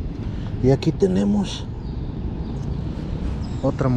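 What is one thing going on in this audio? Fingers scrape through loose, crumbly soil.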